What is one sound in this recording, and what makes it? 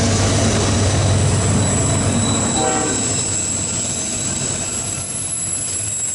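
Autorack freight cars clatter over the rails.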